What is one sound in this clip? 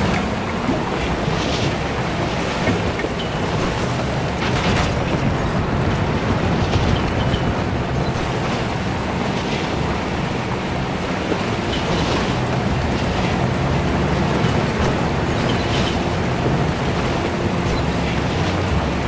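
Tyres crunch and rattle over a bumpy dirt track.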